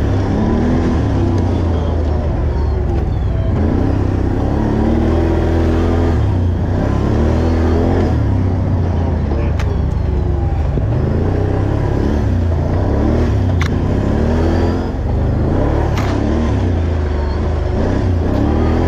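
An ATV engine revs and drones loudly, rising and falling in pitch.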